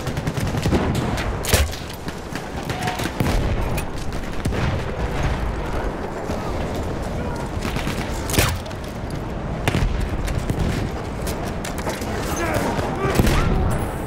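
Gunfire and explosions rumble and crack throughout a battle.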